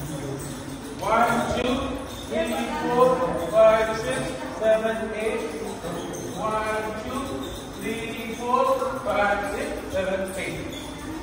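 A young woman calls out counts loudly in an echoing room.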